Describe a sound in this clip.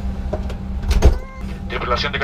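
A heavy aircraft door thuds shut.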